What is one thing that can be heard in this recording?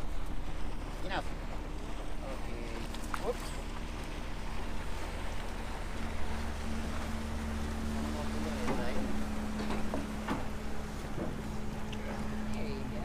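A boat engine hums steadily nearby.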